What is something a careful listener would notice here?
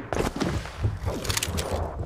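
A glowing blade whooshes through the air.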